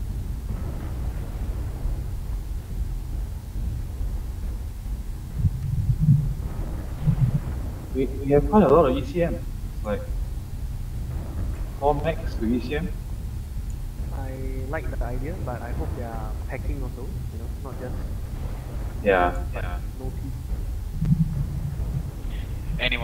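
A heavy machine hums with a deep, steady rumble.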